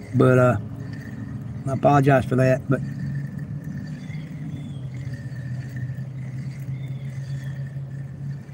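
Water laps gently against a small boat's hull.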